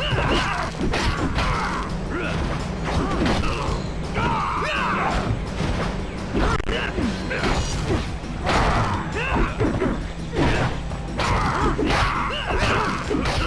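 Blades slash and strike with sharp hits over and over.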